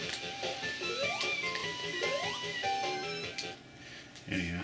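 Upbeat electronic game music plays through a television speaker, then cuts off.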